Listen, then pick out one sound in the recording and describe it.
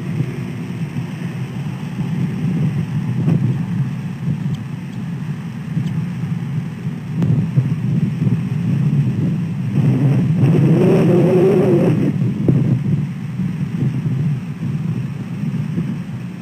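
Large wings flap and rustle close by.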